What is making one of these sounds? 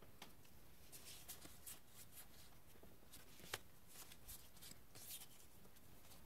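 Playing cards rustle and flick softly in hands.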